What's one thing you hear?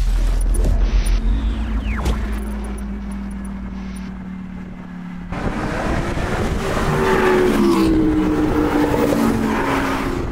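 A sports car engine roars as the car drives past.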